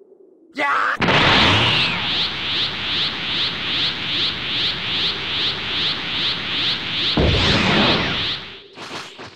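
A powerful energy charge roars with a fast, even pulsing.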